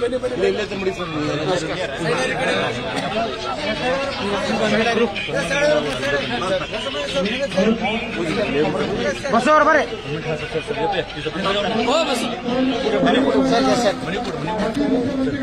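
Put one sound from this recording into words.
A crowd of men shout and chant loudly outdoors.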